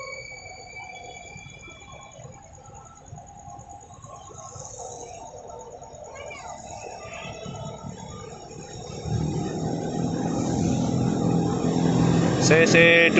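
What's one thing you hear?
A diesel locomotive engine rumbles, growing louder as it approaches.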